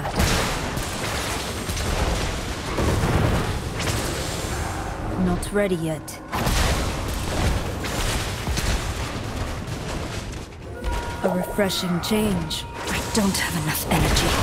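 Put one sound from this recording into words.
Magic blasts and fiery explosions crackle and boom repeatedly.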